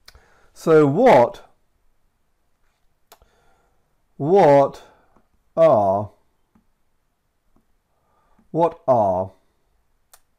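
A man speaks slowly and clearly into a close microphone, in short phrases with pauses.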